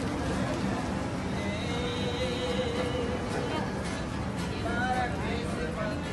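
People chatter nearby in a busy outdoor crowd.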